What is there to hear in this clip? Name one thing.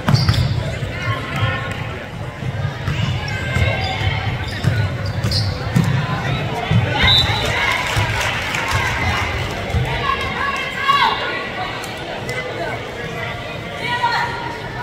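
A crowd of spectators chatters and cheers.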